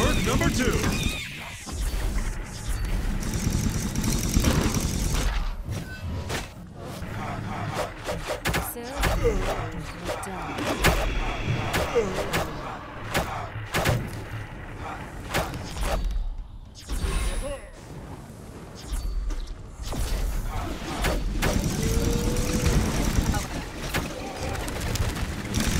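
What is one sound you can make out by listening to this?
Game spells and weapons zap, clash and burst in a busy fight.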